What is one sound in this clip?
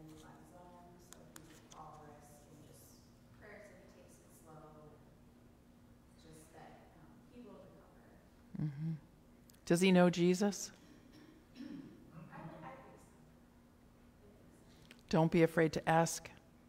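A woman speaks calmly into a microphone in a room with a slight echo.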